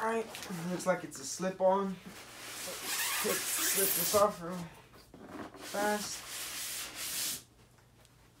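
A cardboard box scrapes and slides as it is lifted off.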